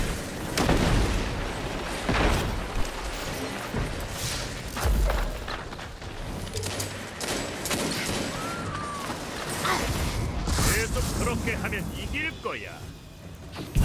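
Gunfire bursts and booms sound in a video game.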